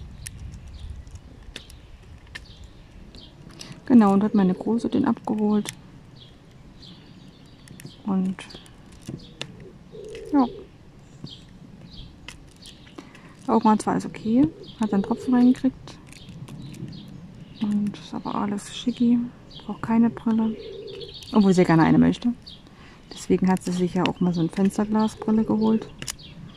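A plastic pen taps and clicks softly as beads are pressed into place.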